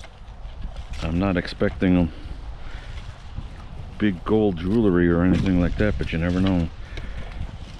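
A metal detector gives out warbling electronic tones.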